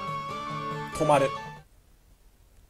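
Electronic game music plays and cuts off abruptly.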